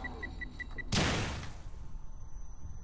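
A trap goes off with a short hissing burst.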